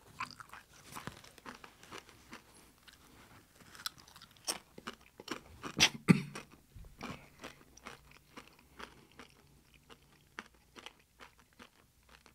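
Paper crinkles and rustles, close by.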